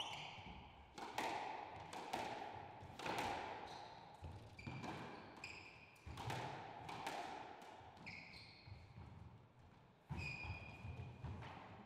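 Sports shoes squeak sharply on a wooden floor.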